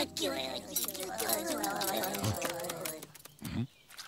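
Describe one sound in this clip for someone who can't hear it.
Small cartoon creatures chatter in squeaky, high voices.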